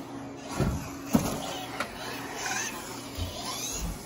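A small remote-control car's electric motor whines as it races past.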